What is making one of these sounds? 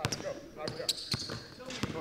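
A basketball bounces on a hardwood floor in a large echoing hall.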